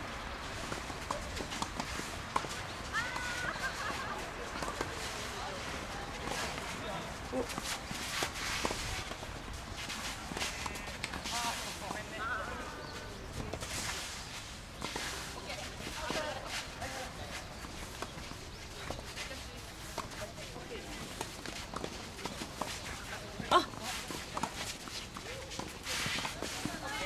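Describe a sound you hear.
Tennis balls are struck sharply with rackets in a rally outdoors.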